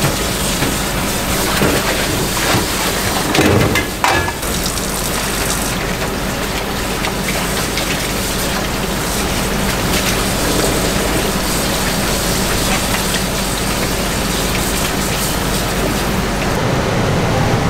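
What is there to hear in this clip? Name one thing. Tap water splashes steadily into a basin.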